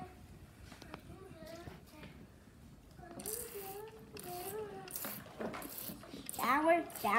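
A child talks with animation close by.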